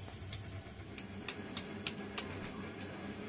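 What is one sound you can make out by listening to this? Metal utensils clink together.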